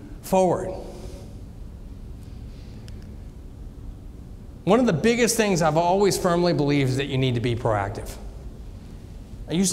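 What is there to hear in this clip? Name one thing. A man speaks calmly through a microphone in a large room, pausing between phrases.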